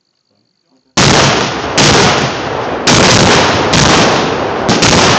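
A loud explosion booms nearby and rumbles on outdoors.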